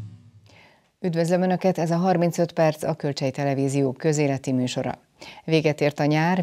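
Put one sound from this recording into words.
A middle-aged woman speaks clearly and calmly into a microphone, close up.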